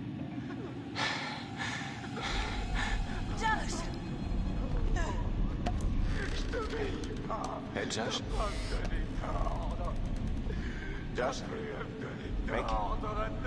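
A young man shouts angrily in an echoing space.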